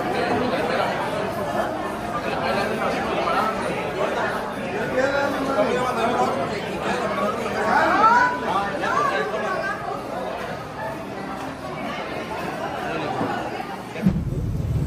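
A crowd of people chatters all around in a large busy room.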